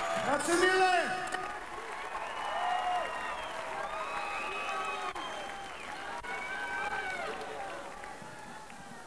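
A large crowd screams and cheers in a big echoing arena.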